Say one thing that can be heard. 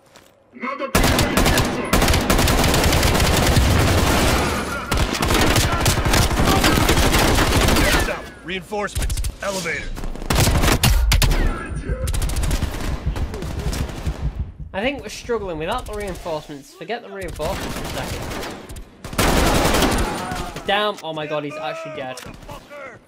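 Rapid gunfire bursts loudly and close by.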